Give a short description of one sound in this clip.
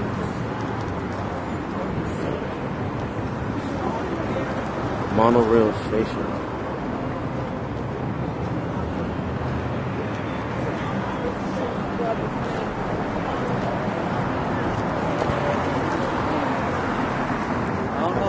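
Voices of a crowd of walkers chatter nearby.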